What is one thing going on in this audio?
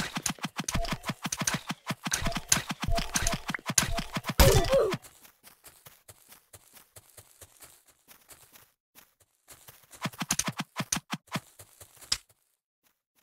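Sword blows land rapidly in a video game fight.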